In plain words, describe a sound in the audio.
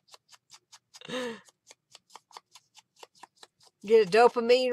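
A glue pen taps lightly on paper in quick, soft clicks.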